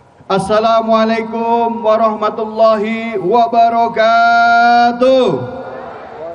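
A man chants loudly through a loudspeaker outdoors, with a strong echo.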